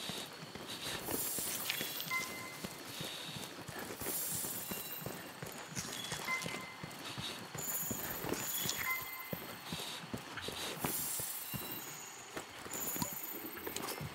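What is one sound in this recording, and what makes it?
Footsteps patter quickly over dirt.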